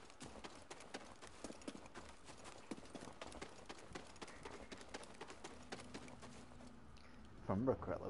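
Footsteps run quickly over grass and stone.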